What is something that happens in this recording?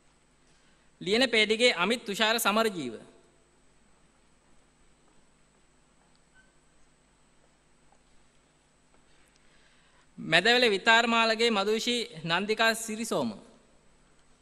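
A man reads out over a loudspeaker in a large echoing hall.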